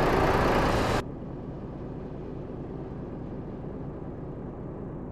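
A truck engine hums softly, muffled as if heard from inside the cab.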